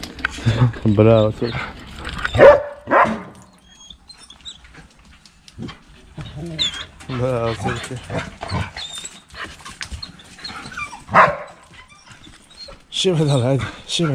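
A dog whines in a high, wavering voice.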